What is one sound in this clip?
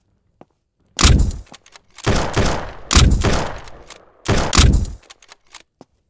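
A gun fires several loud, echoing shots.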